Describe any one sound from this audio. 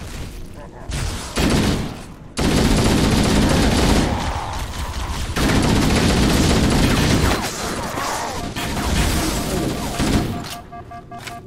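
Gunfire from a video game rifle rattles in loud bursts.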